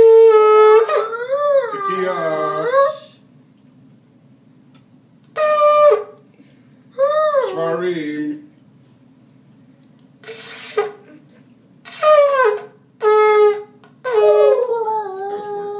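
A young boy blows a ram's horn in loud, wavering blasts that bend up and down in pitch.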